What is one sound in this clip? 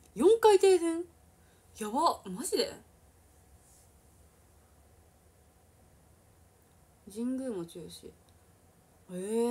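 A young woman speaks close to the microphone in short, animated bursts with pauses.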